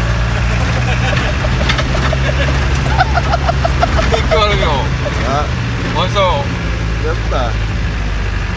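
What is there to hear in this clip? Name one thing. Young men talk and laugh close by.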